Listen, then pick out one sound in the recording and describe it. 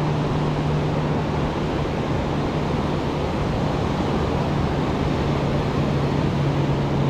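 Waves wash steadily onto a beach nearby.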